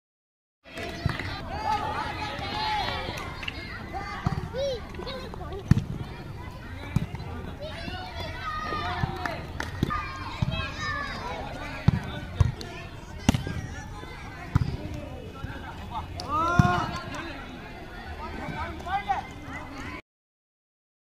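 A volleyball is hit with sharp slaps.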